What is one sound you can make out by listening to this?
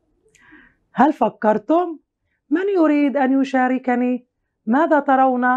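A woman speaks calmly and clearly, close to a microphone.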